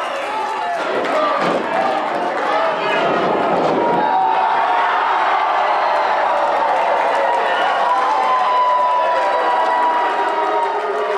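A crowd cheers and shouts loudly in a large hall.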